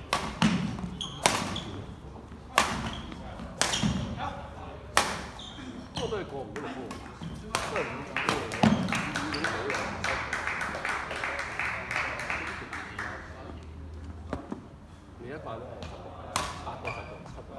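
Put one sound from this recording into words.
Badminton rackets strike a shuttlecock with sharp pops in a large echoing hall.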